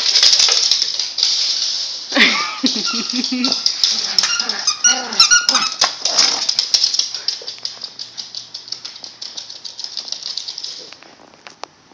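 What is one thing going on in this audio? A small dog's claws patter and click quickly on a hard floor.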